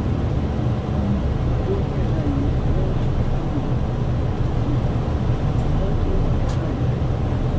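A bus body rattles and rumbles over the road.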